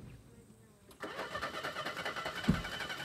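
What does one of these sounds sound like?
A car engine starts and idles roughly.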